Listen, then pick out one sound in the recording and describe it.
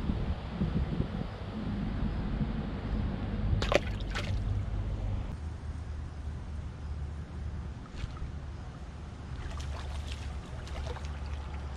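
A fishing reel clicks as a line is wound in.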